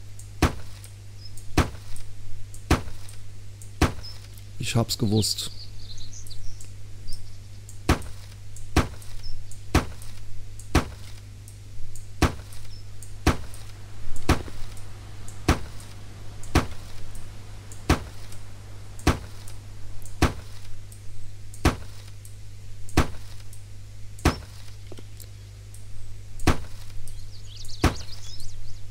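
A hammer knocks steadily on wood in quick, even blows.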